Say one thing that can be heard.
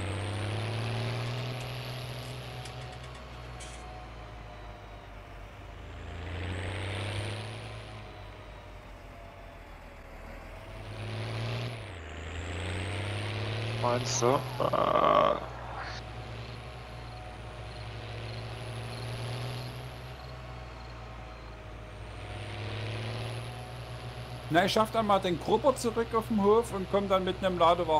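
A tractor engine hums steadily and rises and falls in pitch as it drives.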